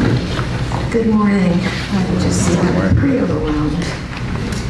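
A woman speaks calmly through a microphone, echoing in the hall.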